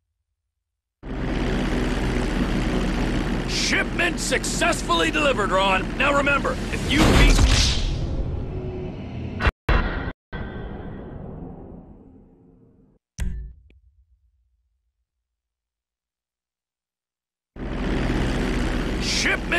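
A propeller plane's engine drones loudly.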